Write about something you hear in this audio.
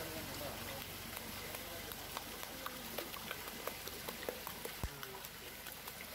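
Water drips and splashes as a fish is lifted out.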